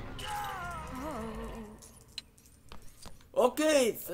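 Small coins jingle as they are picked up.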